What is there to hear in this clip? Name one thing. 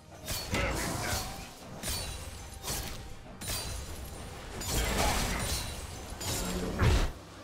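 Video game spell effects and hits burst during a fight.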